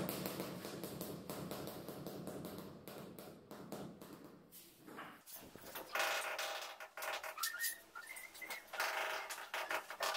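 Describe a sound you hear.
A rubber mallet taps tiles into place with dull knocks.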